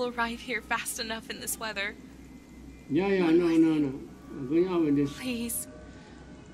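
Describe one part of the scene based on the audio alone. A woman speaks softly over a phone call.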